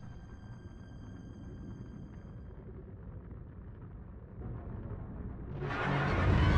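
A spaceship's engines hum with a low, steady rumble that swells louder toward the end.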